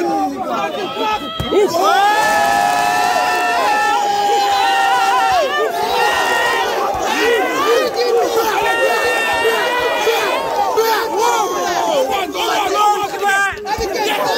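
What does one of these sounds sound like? Boxing gloves thud against pads in quick bursts.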